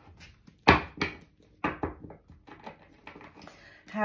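Cards shuffle in a woman's hands.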